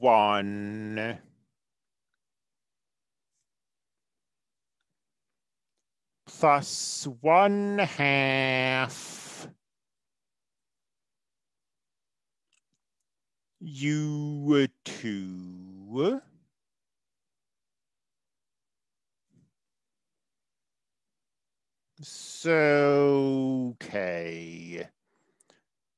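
A young man talks calmly in short bursts through an online call.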